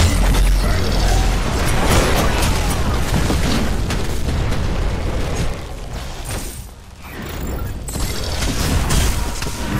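Magic blasts and weapon hits clash loudly in fast bursts.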